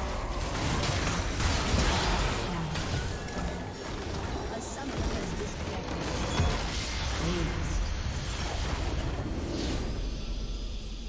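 Magic blasts and weapon clashes crash rapidly in a busy battle.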